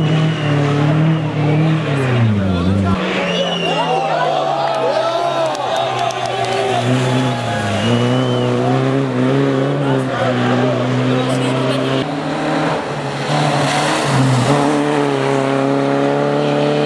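A rally car engine roars and revs hard, rising and falling in pitch.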